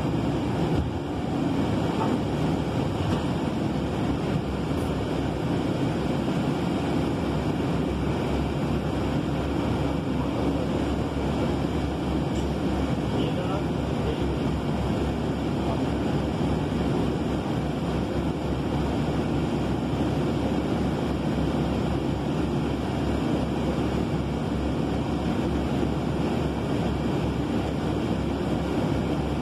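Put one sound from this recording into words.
A vehicle's engine and tyres rumble steadily on the road.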